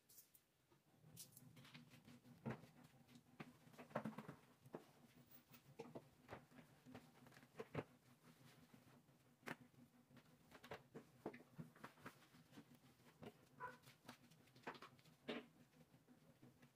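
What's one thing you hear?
A mop swishes and scrapes across a tiled floor.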